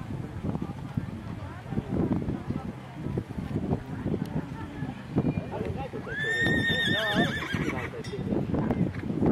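A horse's hooves thud on grass at a gallop.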